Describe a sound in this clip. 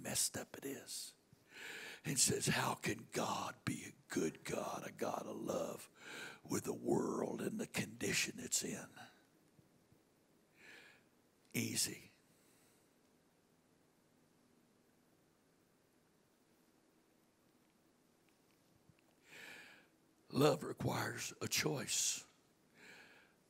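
An older man speaks earnestly into a microphone, heard over loudspeakers in a large room, with long pauses.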